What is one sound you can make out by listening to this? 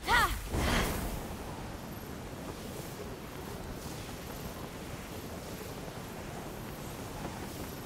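Wings flap and whoosh through the air.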